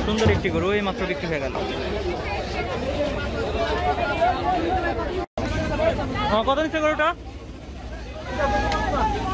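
Several men talk loudly and all at once close by.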